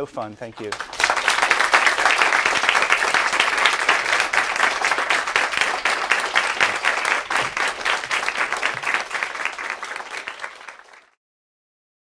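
An audience applauds loudly, and the applause fades away.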